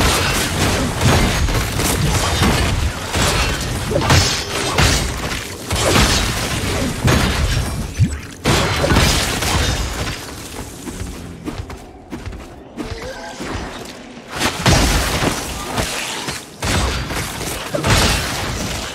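Game combat sounds of weapons striking and spells bursting come in quick succession.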